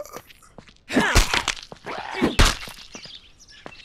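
A wooden spear strikes a body with heavy thuds.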